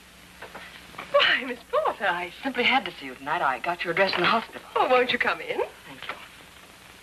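A second woman answers cheerfully nearby.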